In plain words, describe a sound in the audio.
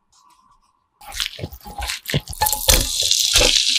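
Hands squish and mix food in a bowl.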